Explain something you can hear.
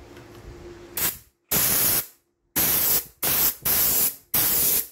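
An air blow gun hisses in short, loud bursts of air.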